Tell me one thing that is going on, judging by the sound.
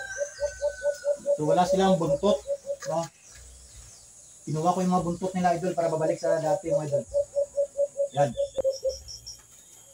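Caged birds call in quick repeated notes close by.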